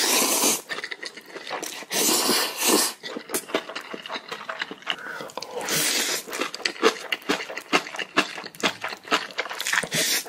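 A man chews food wetly, close to a microphone.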